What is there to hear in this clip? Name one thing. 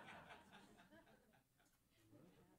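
A saxophone plays a short phrase.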